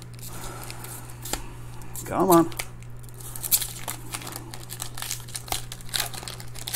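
Foil wrappers crinkle and rustle between fingers.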